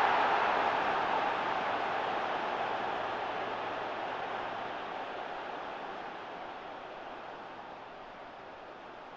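A large stadium crowd roars loudly, then slowly fades.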